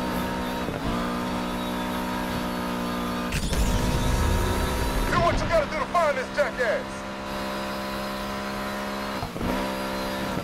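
A car engine's pitch drops sharply as gears change.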